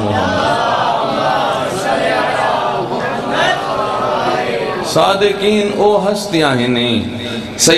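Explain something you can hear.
A man speaks with passion into a microphone over a loudspeaker, his voice rising and falling in a sing-song way.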